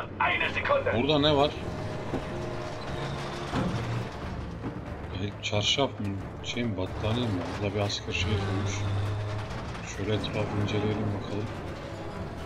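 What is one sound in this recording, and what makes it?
Tank tracks clank and grind over rubble.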